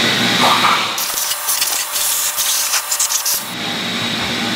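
A vacuum hose sucks with a rushing roar.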